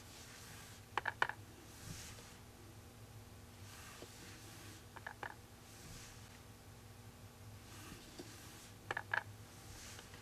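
A paint tool taps lightly on a hard surface.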